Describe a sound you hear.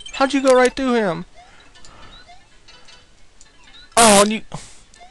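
Short chirpy retro video game sound effects play.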